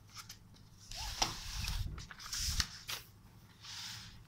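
Paper rustles as notebook pages are handled and turned.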